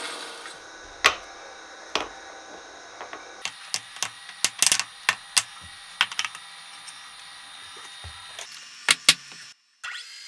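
Metal parts clink and knock as a block is set in a vise.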